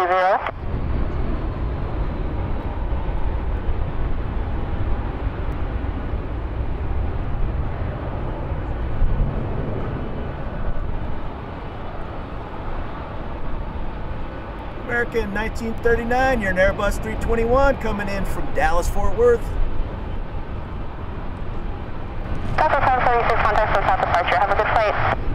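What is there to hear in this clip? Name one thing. A jet airliner roars steadily as it takes off in the distance.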